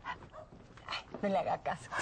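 A middle-aged woman laughs.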